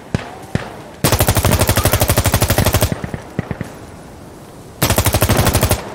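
An assault rifle fires rapid automatic bursts.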